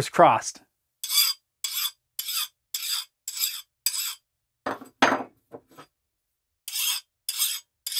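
A metal file rasps in short strokes against a steel horseshoe.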